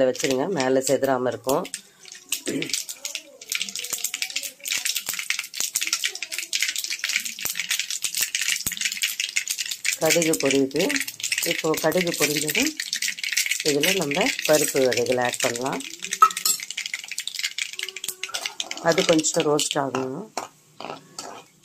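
Food sizzles and crackles in hot oil in a pan.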